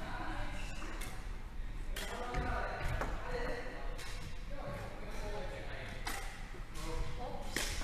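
Badminton rackets strike a shuttlecock with sharp pops in an echoing hall.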